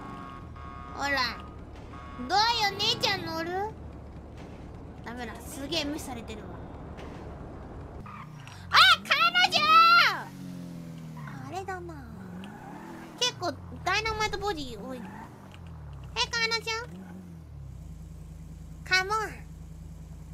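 A young woman speaks with animation into a close microphone, in a high, playful voice.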